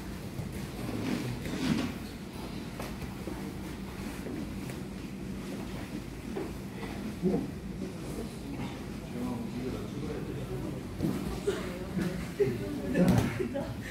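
Heavy cloth rustles and rubs as two people grapple.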